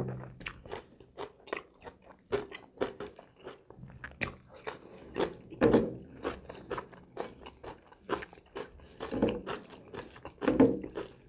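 A man chews food loudly and smacks his lips close by.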